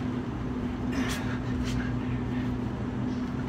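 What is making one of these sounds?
Hands slap down onto concrete.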